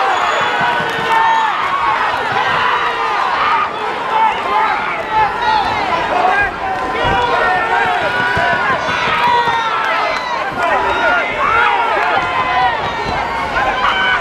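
Boxing gloves thud against each other.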